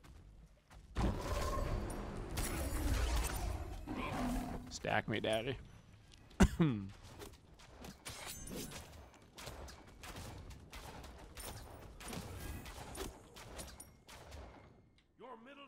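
Magic blasts and whooshes burst in quick succession.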